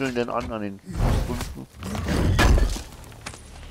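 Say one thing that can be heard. A heavy wooden chest lid creaks and thuds open.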